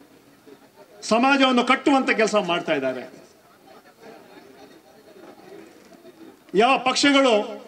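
A man speaks forcefully into a microphone, heard through loudspeakers outdoors.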